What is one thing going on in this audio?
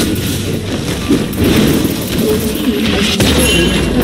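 A tower crumbles with a loud crash.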